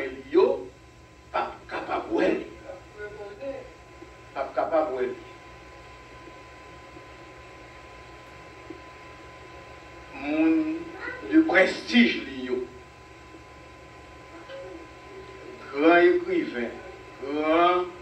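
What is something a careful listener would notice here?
An elderly man preaches with emphasis into a microphone, with long pauses.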